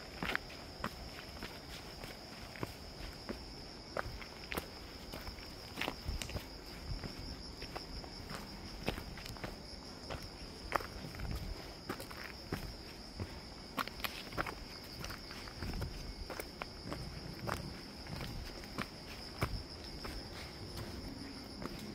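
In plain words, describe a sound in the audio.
Footsteps crunch and scrape on a rocky dirt trail.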